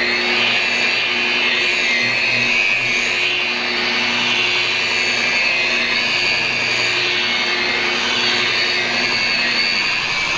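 An electric polisher whirs steadily, its pitch wavering slightly as it buffs a surface.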